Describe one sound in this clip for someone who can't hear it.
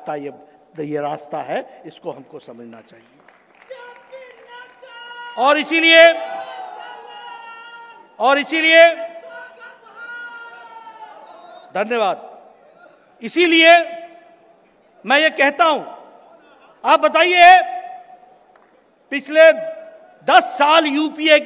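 An elderly man speaks forcefully into a microphone, his voice echoing through a large hall.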